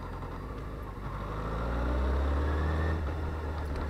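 An inline-four sport bike accelerates hard, its engine pitch climbing.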